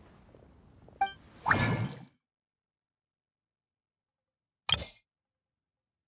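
Soft interface clicks and chimes sound.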